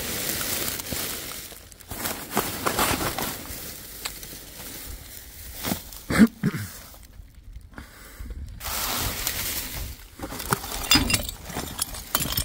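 Plastic bags rustle and crinkle as rubbish is rummaged through.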